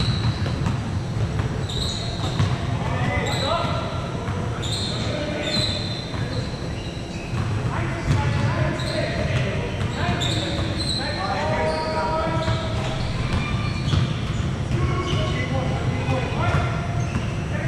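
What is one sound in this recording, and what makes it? Sneakers squeak sharply on a hard court, in a large echoing hall.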